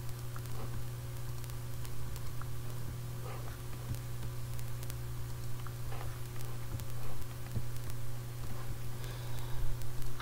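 Footsteps tread softly on grass.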